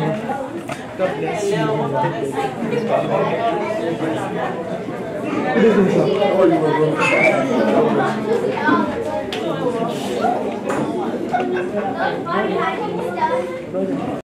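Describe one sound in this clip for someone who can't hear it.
A crowd of men and women chatters nearby in a room.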